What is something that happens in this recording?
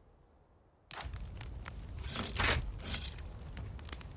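A key turns in a heavy lock with a metallic clunk.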